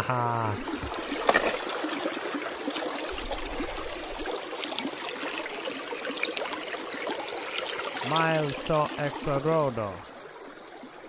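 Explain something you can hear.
Shallow water ripples and splashes over rocks.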